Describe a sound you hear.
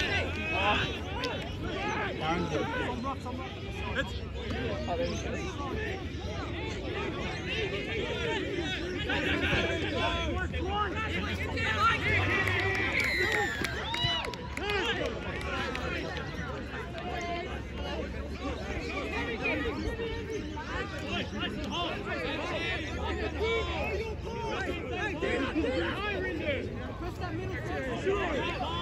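Players shout and call to each other across an open field outdoors.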